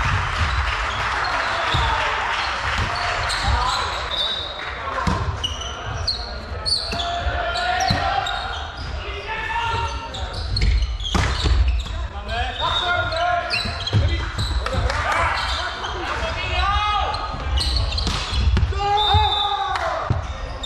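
A volleyball thuds off hands and arms.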